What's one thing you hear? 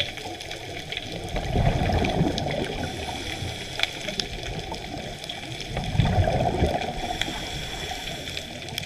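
Water swirls and rumbles in low bursts underwater.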